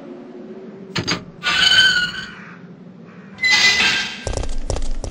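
A metal gate creaks and clanks open.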